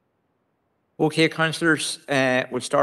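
A middle-aged man speaks into a microphone.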